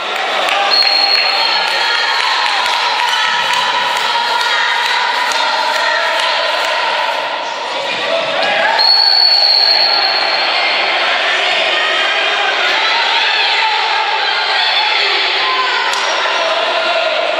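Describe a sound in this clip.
Young men shout to each other across the echoing hall.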